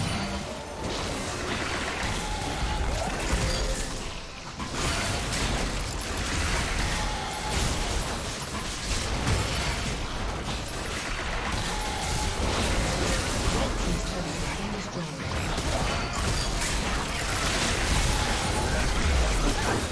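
Spells and attacks crackle and thud in a game battle.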